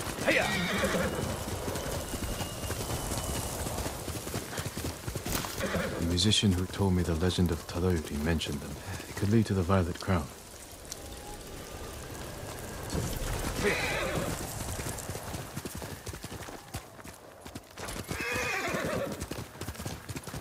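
A horse gallops over soft ground.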